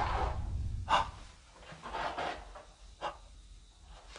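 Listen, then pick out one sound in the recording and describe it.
Footsteps tap on a tiled floor.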